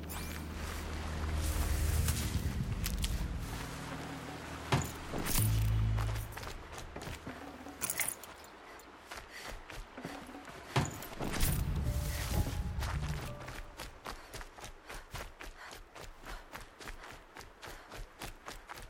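Grass and bushes rustle as someone pushes through.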